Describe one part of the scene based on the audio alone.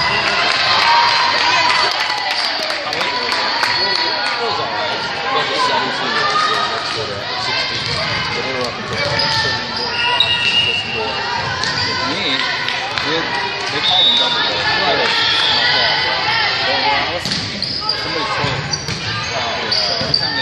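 A crowd of spectators chatters and cheers throughout a large echoing gym.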